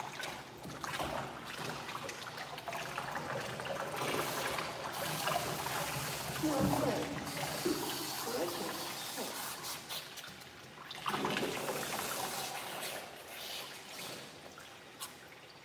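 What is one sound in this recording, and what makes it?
Hands rub and squelch through a dog's wet fur.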